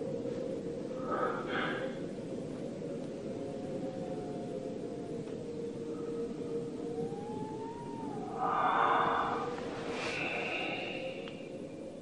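A man sobs and groans quietly.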